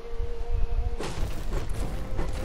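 A pickaxe strikes wood with sharp chopping knocks.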